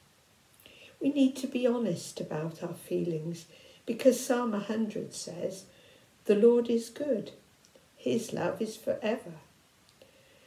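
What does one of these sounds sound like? An elderly woman speaks calmly and close by, as if on an online call.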